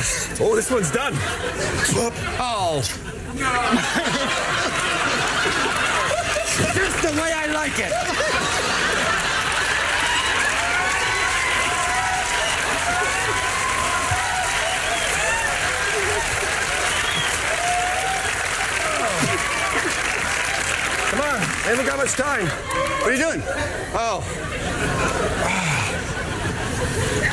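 A large studio audience laughs loudly and cheers.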